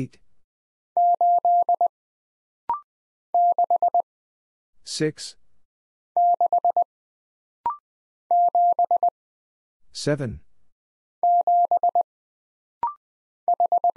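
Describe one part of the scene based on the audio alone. A telegraph key beeps out Morse code in short, quick bursts of a steady tone.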